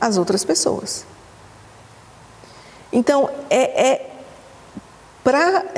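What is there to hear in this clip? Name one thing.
A middle-aged woman speaks calmly and closely into a microphone, with pauses.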